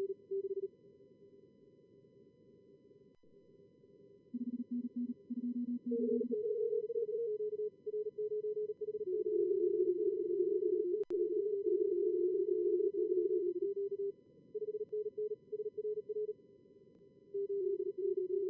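Morse code beeps sound at several pitches and speeds.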